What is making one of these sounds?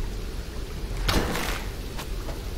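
A bow string snaps as an arrow is loosed.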